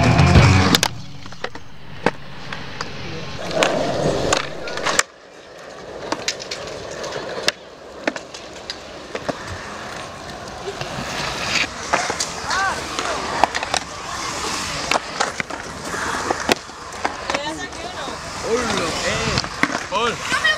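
A skateboard clacks against concrete edges.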